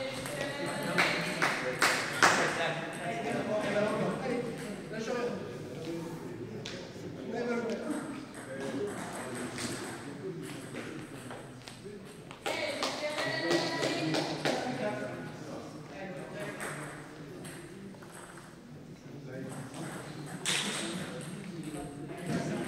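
A table tennis ball clicks back and forth between paddles and the table in a large echoing hall.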